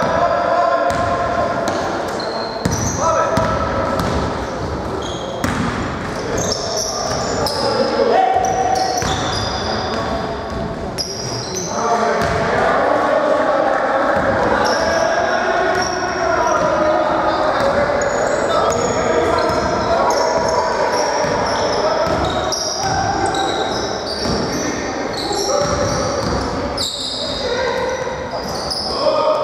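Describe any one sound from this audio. Players shout to each other across an echoing hall.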